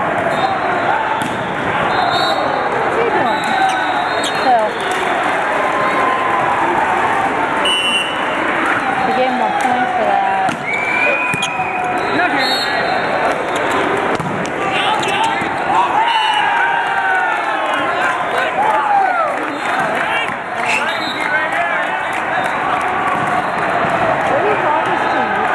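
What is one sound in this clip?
Many voices chatter and call out across a large echoing hall.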